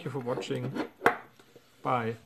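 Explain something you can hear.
A metal padlock knocks down onto a hard table.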